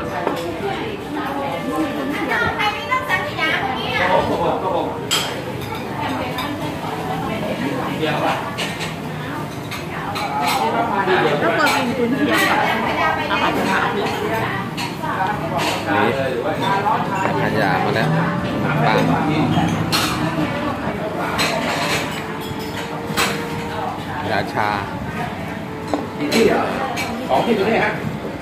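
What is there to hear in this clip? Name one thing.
Other diners chatter in the background.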